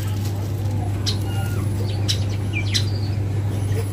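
A porcupine rattles its quills close by.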